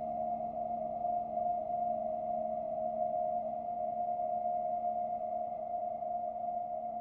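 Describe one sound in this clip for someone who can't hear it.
A synthesizer drones with a steady, buzzing tone.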